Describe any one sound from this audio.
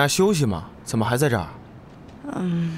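A young woman answers softly.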